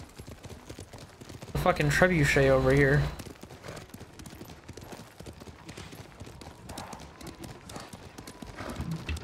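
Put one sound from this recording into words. A horse's hooves thud at a gallop on a dirt trail.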